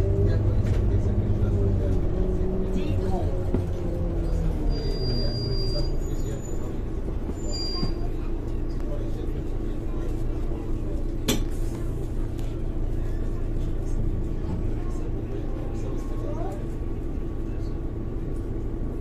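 A bus interior rattles and clatters over the road.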